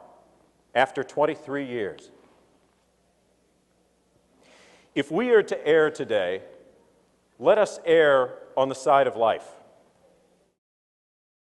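A man speaks forcefully into a microphone in a large echoing hall.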